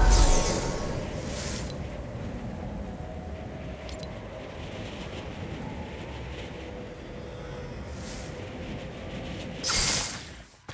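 A fiery rocket roars and whooshes steadily.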